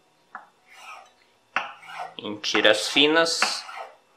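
A knife cuts through kelp on a wooden board.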